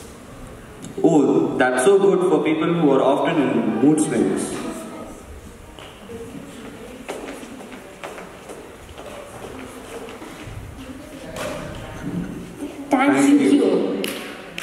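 A young boy speaks with animation through a microphone in a large echoing hall.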